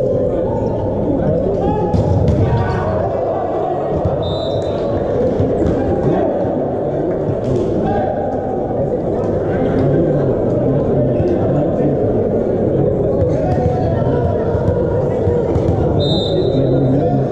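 A volleyball is struck by hand.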